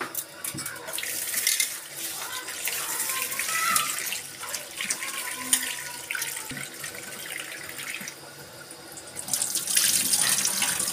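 Water runs from a tap into a metal bowl and splashes.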